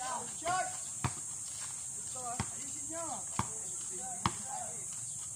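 A ball is kicked with dull thuds on hard ground.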